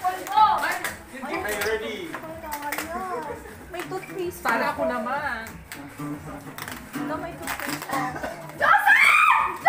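A small crowd of people chat nearby indoors.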